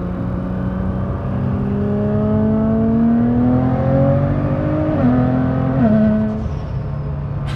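A car engine revs up and shifts gears.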